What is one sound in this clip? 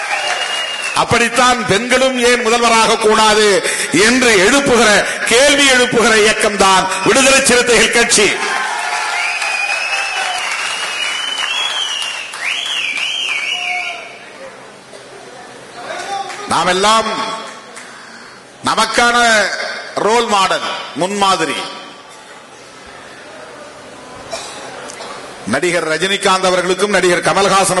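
A man speaks forcefully through a microphone and loudspeakers, in bursts with pauses.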